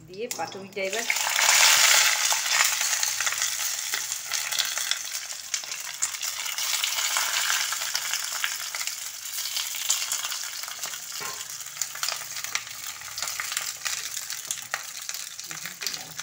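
Batter sizzles steadily in a hot pan.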